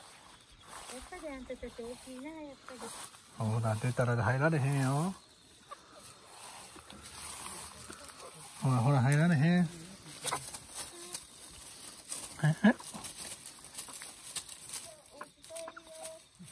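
Hens cluck and croon close by.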